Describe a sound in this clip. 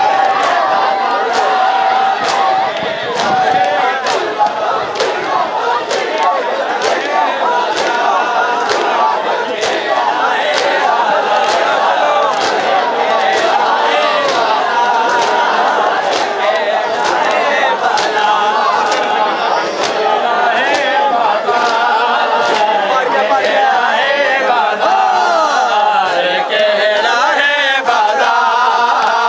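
A crowd of men chants loudly in unison outdoors.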